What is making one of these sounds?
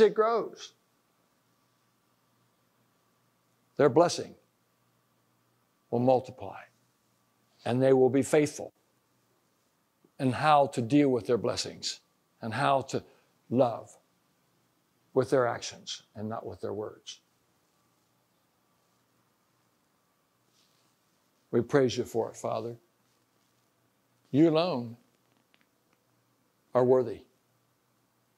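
An elderly man speaks to an audience in a calm, measured voice, with pauses between phrases.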